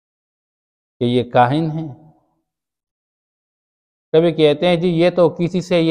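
A man chants melodically into a close microphone, with pauses between phrases.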